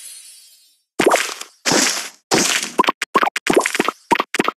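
Candies burst with sparkling pops.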